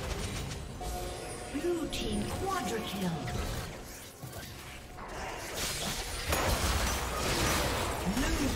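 Magic spells whoosh and burst in a fast video game battle.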